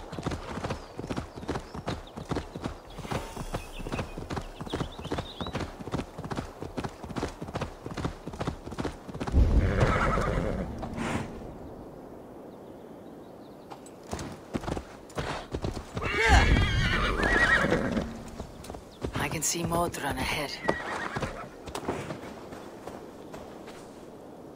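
Horse hooves thud at a steady gallop on a dirt path.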